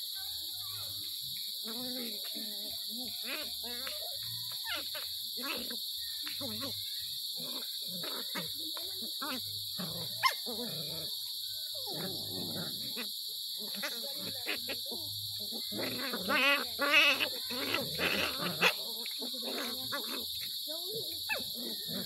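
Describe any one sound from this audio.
Puppies growl and yip playfully close by.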